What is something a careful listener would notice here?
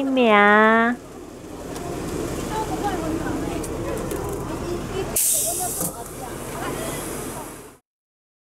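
Several older men and women chatter quietly nearby.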